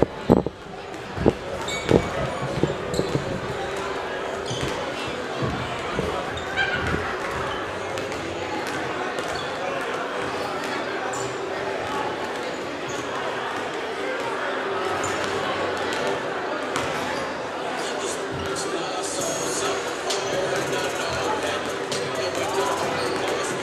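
A crowd chatters in the stands of a large echoing hall.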